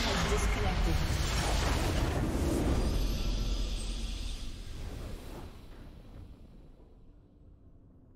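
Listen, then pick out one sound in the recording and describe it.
A triumphant fanfare swells and fades out.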